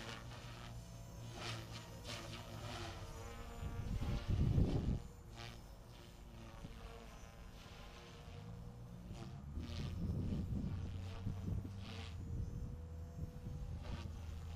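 A model plane's motor whines overhead, rising and falling as it passes.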